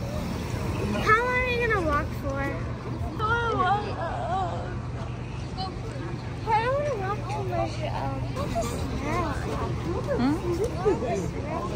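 A woman talks cheerfully nearby outdoors.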